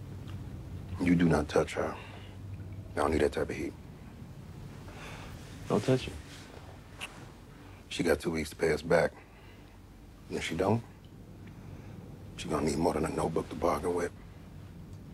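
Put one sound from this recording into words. Two men talk calmly.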